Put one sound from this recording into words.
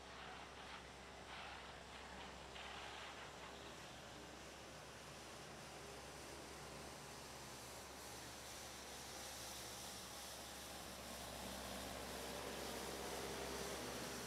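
A tractor engine rumbles, growing louder as it approaches.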